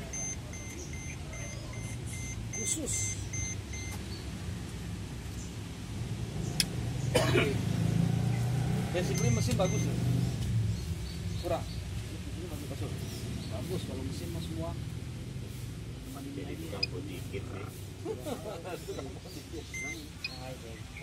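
An electronic device beeps in quick, short pulses.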